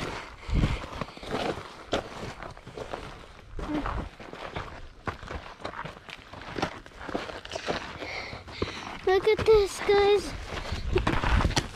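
Fabric rustles and scrapes right against the microphone.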